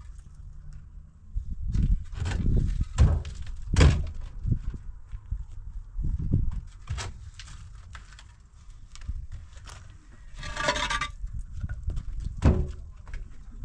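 Concrete blocks knock and scrape as a man climbs on a block wall.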